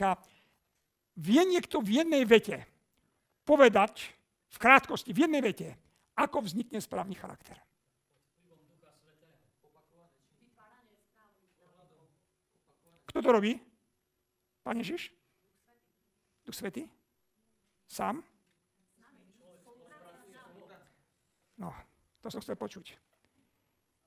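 A middle-aged man speaks calmly into a headset microphone, with pauses, in a room with some echo.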